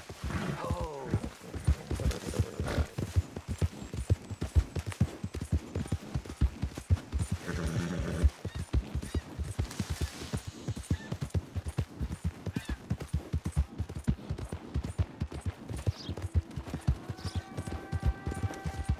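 Horse hooves thud rapidly at a gallop over the ground.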